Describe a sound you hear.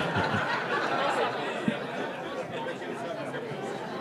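A woman laughs.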